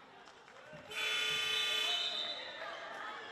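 A referee blows a loud, long whistle.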